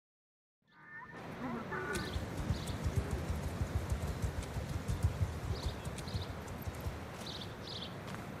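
A horse trots with quick, steady hoofbeats on soft ground.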